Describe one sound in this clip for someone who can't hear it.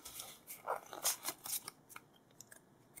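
Playing cards slide and rustle against each other in someone's hands.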